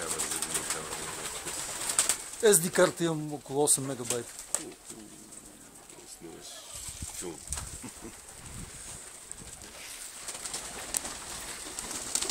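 A pigeon flaps its wings in flight.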